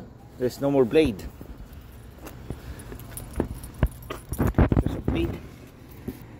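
A man speaks close by, explaining casually.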